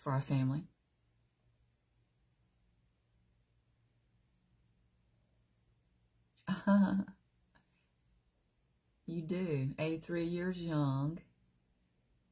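A middle-aged woman talks warmly and close to the microphone, with pauses.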